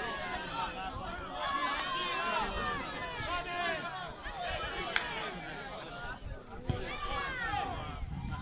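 Men shout to each other across an open outdoor football pitch, some distance away.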